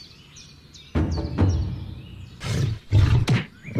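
Heavy blows thud and crash as two large creatures fight.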